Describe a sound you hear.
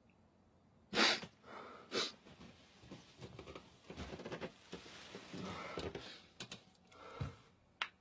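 Bedding rustles and shuffles close by.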